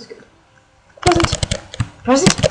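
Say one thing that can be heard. Calmer electronic game music begins after a short silence.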